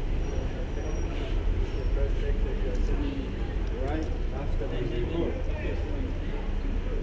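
Voices of people on the street murmur faintly nearby.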